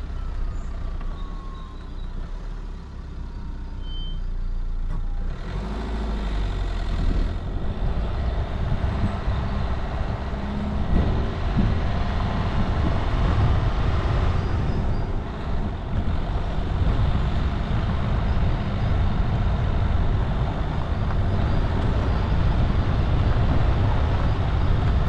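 Tyres crunch over a dirt and gravel track.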